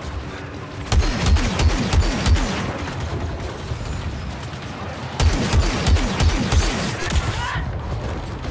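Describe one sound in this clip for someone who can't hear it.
A blaster rifle fires in rapid bursts.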